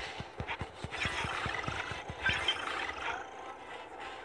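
A big cat snarls and growls while fighting another animal.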